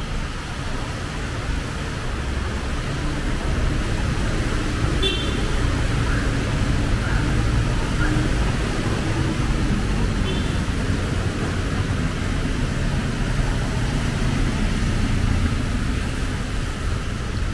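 Vehicles drive through floodwater, splashing and swishing.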